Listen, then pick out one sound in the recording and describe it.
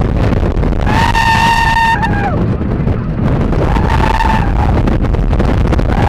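Wind roars loudly past the microphone.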